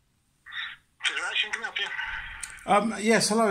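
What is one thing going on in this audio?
A middle-aged man speaks close up with animation.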